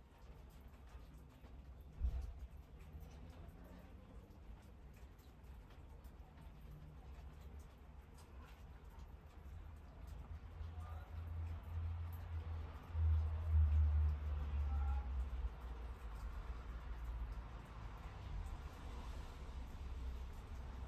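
Water sloshes softly inside a washing machine.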